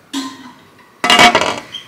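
A metal pot lid clanks.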